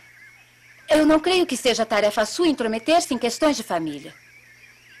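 A woman speaks nearby with animation.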